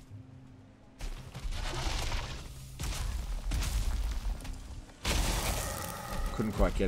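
Heavy weapon blows land with loud thuds.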